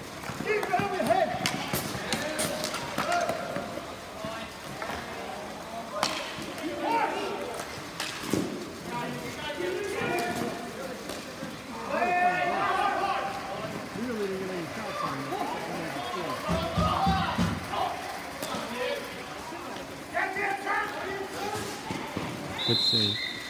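Young players shout and call out to each other across an open court.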